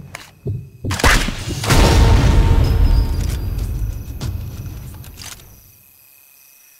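A muffled rifle shot cracks and rumbles away in a long echo.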